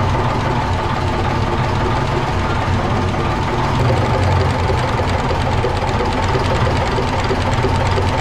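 A diesel engine runs loudly with a steady, rapid clatter.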